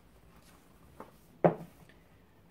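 A book knocks softly against other books.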